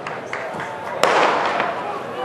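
A starting pistol fires with a sharp crack.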